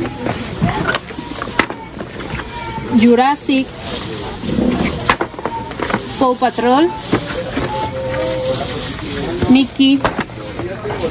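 Plastic-wrapped boxes rustle and knock as they are handled.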